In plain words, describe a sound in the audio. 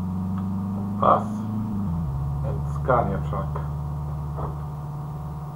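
A man speaks briefly and casually into a microphone.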